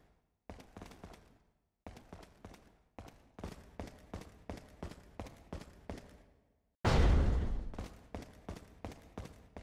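Footsteps tread on a hard floor at a steady pace.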